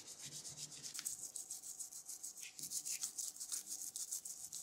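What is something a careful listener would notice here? A small brush scrubs briskly on metal.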